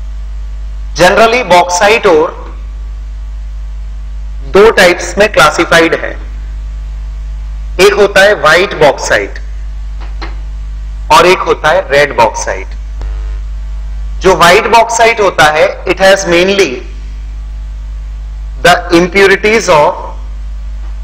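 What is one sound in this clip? A man speaks calmly, close to a microphone, in short phrases.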